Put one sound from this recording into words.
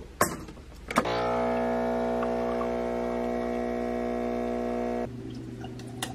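An espresso machine pump hums loudly and steadily.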